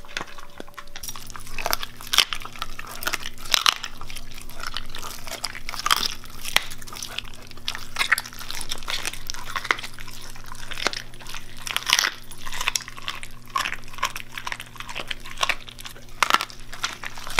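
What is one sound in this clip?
A dog chews and tears at raw meat with wet smacking sounds.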